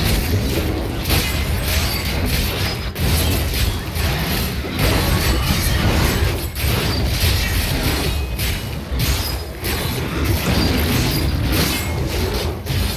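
Weapons strike and slash at monsters in rapid, loud hits.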